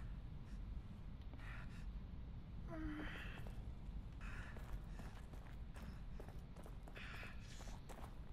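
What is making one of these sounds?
Footsteps scuff slowly on a stone floor.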